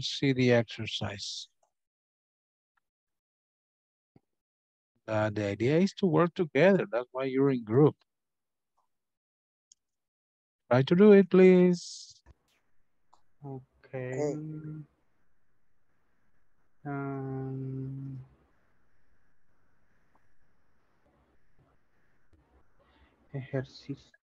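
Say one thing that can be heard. A middle-aged man speaks calmly and slowly through a headset microphone on an online call, with long pauses.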